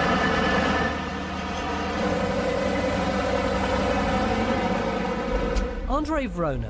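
A huge truck's diesel engine roars steadily close by.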